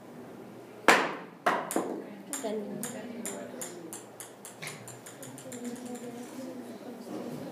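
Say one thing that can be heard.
A ball drops on a hard floor and bounces faster and faster until it settles.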